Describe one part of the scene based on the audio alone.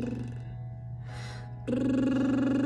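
A young woman takes a quick breath between notes.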